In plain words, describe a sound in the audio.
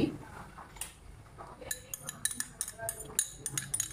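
A spoon scrapes thick yogurt out of a glass into a bowl.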